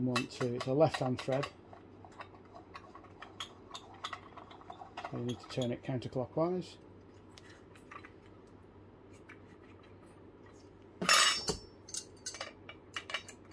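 Metal parts click and clink as they are handled.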